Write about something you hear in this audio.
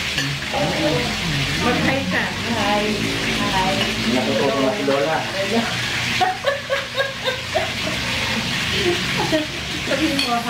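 Forks clink against plates.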